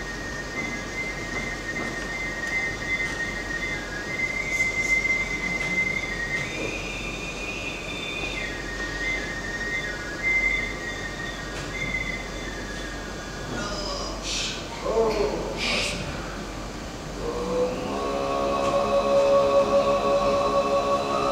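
A man throat-sings with a high, whistling overtone.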